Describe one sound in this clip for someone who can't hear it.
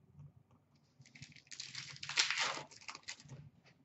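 Plastic packaging crackles as it is torn open.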